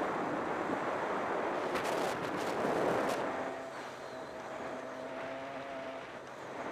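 Wind rushes loudly past a helmet microphone.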